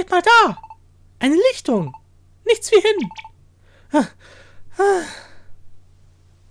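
Small cartoon creatures give short, high, chirping cries.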